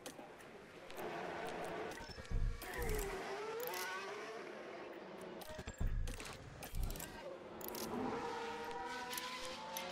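Racing car engines whine and rise in pitch as they pass.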